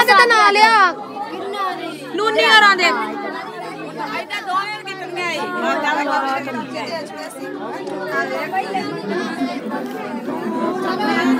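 A crowd of women chatter and talk over one another.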